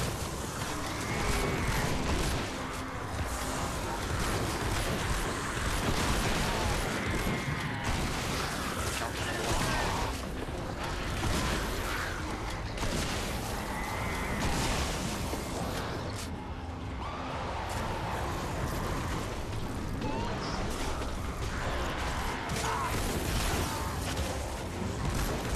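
Footsteps run over grass and ground.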